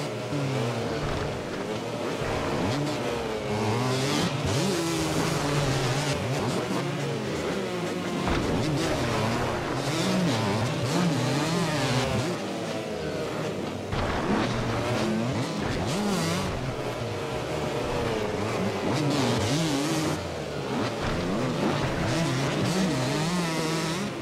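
Dirt bike engines whine and rev up and down throughout.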